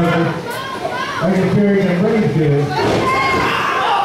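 Bodies thud heavily on a wrestling ring's canvas.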